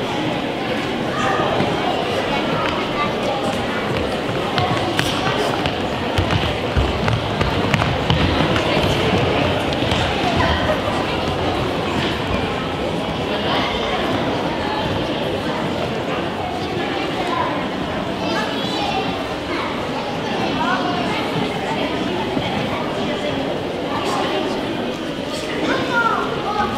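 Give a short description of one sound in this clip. Children's feet shuffle and stamp on a wooden floor in a large echoing hall.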